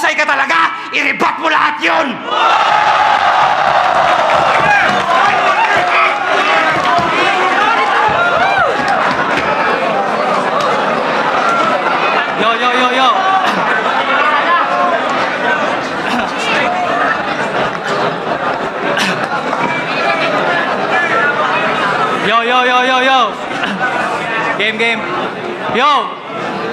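A man speaks with animation into a microphone through loudspeakers.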